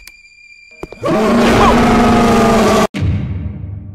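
A monster lets out a loud, sudden shriek.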